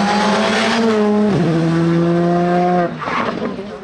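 A rally car engine roars loudly and shifts gear as it speeds away.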